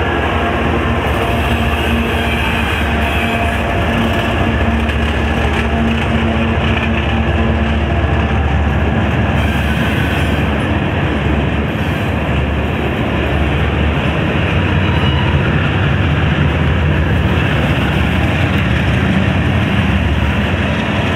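Steel wheels squeal and screech on the rails.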